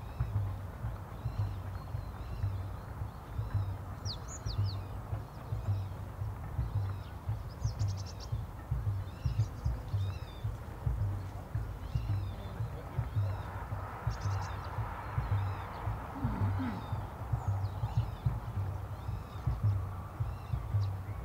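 Wind blows steadily outdoors, buffeting the microphone with low rumbles.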